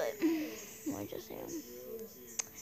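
A young girl speaks close to a microphone.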